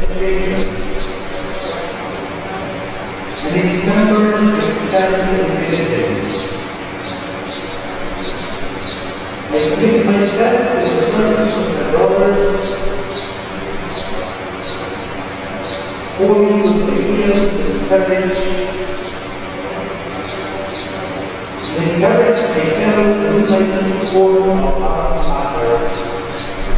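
A group of voices sings a slow hymn together.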